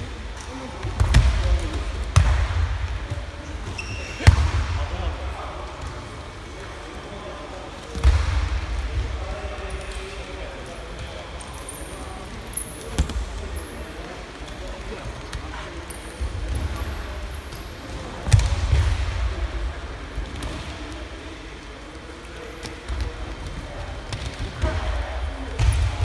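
Bodies thud and slap onto padded mats.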